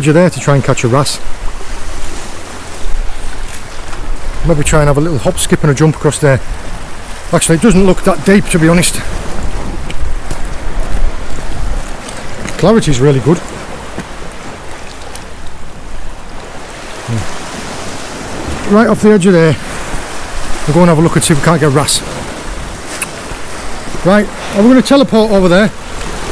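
A man talks calmly close by, outdoors in wind.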